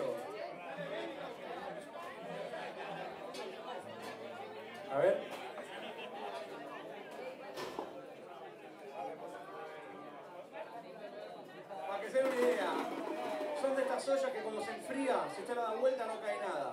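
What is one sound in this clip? Drums are played.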